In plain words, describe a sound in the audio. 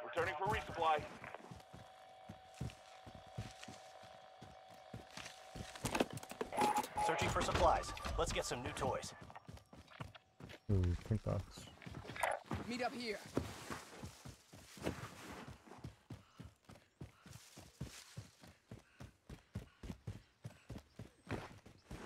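Footsteps crunch quickly over dirt and grass.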